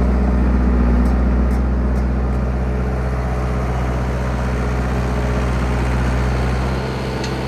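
Bulldozer tracks clank and squeak as the machine turns.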